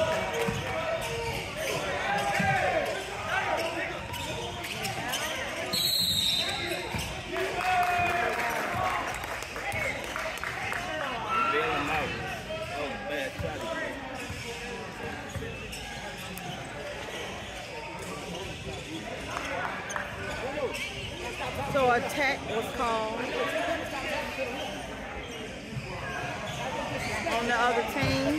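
Players and spectators talk and call out in a large echoing gym.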